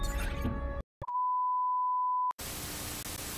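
A steady high test tone sounds.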